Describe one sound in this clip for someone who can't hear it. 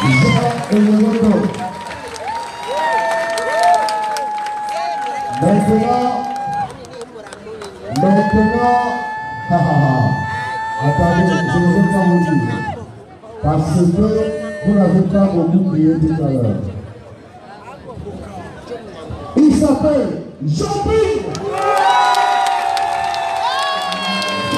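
Men and women in the crowd shout and cheer.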